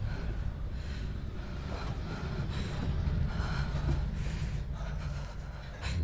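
A young woman pants and breathes heavily close by.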